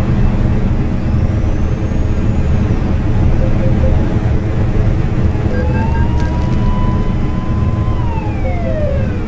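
A car engine hums steadily over rolling road noise.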